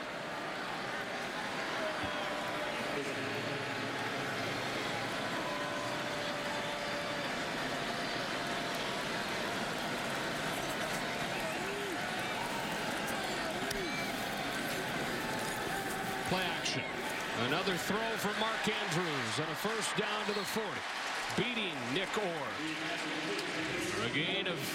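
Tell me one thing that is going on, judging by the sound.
A large stadium crowd roars steadily, swelling into loud cheers.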